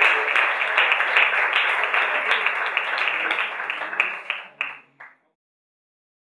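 An audience claps loudly in a hall, and the applause dies away.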